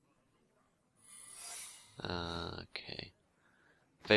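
A magical shimmer rings out as a card is played.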